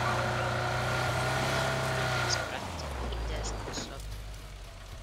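A vehicle engine hums steadily, then winds down.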